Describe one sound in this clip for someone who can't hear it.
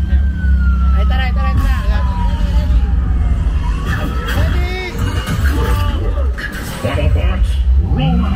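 Metallic whirring and clanking effects ring out from loudspeakers.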